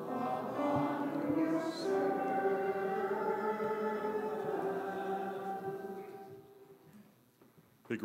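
A choir sings a slow hymn that fades out.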